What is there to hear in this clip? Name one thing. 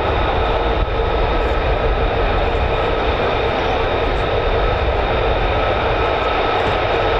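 A jet engine roars loudly and steadily with a high whine.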